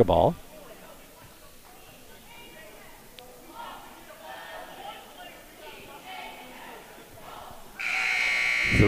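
A crowd murmurs faintly in an echoing gym.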